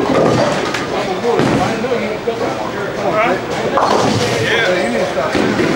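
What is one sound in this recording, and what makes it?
A bowling ball rolls down a wooden lane with a low rumble.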